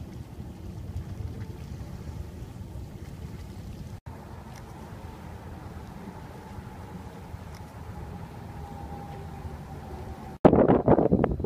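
Wind blows outdoors with a low rumble.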